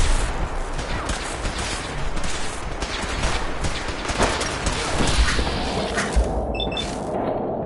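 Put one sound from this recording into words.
A laser rifle fires sharp, buzzing shots.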